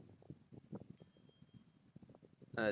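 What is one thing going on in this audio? A short bright chime rings once.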